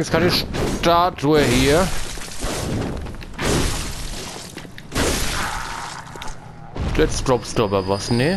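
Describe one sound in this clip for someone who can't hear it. A creature shrieks and snarls.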